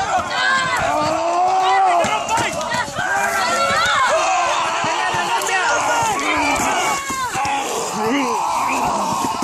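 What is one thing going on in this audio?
A crowd of men and women shout and cheer loudly outdoors.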